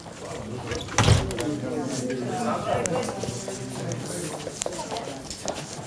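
Several men and women chat together indoors.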